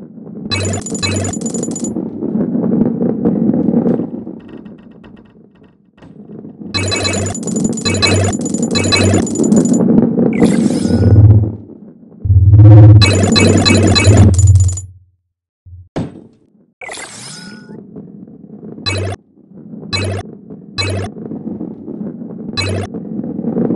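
A ball rumbles steadily as it rolls along a track.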